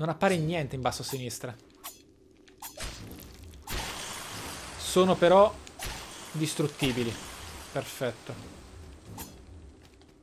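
Sword blows clash and thud in a video game.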